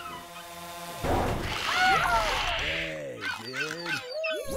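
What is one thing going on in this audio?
Water splashes loudly as a killer whale crashes into the sea.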